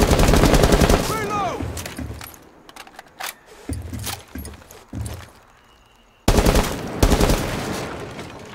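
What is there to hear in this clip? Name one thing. A rifle fires loud bursts of shots.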